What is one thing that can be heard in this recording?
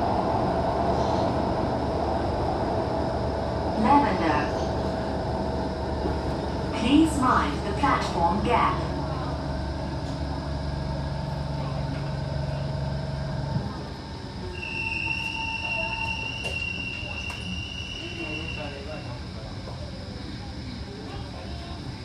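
A subway train rumbles steadily and then slows as it pulls in.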